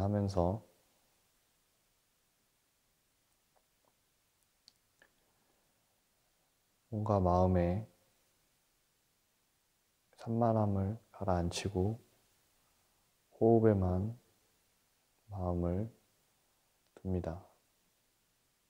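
A man chants in short, low, drawn-out phrases with pauses between them.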